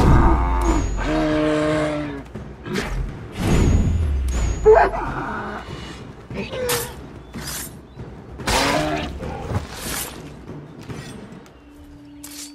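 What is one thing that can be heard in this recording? An elk bellows and grunts as it struggles.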